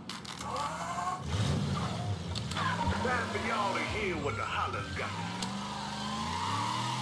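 Tyres screech on tarmac as a car spins.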